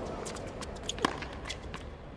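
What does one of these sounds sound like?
A tennis racket hits a tennis ball.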